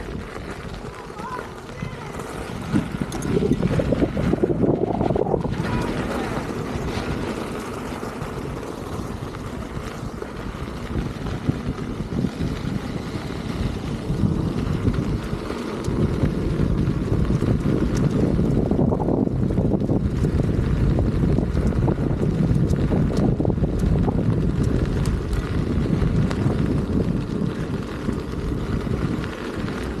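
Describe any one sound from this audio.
Wind buffets loudly against a microphone outdoors.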